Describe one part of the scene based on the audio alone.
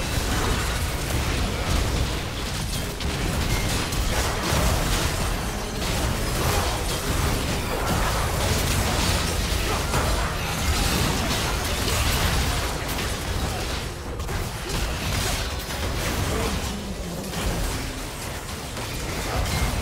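Game spell effects and attacks clash and burst rapidly during a fight.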